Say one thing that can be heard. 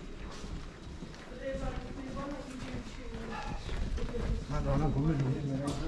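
Footsteps of passers-by tap on stone paving.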